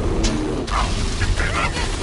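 A blast bursts with a loud boom.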